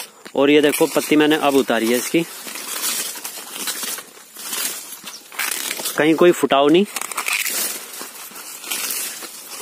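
Dry sugarcane leaves rustle as a hand brushes them.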